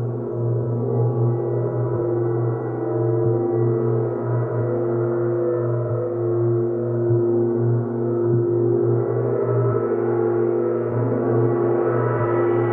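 A singing bowl rings with a sustained tone.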